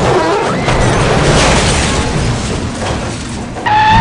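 A vehicle crashes and rolls over with a loud crunch of metal.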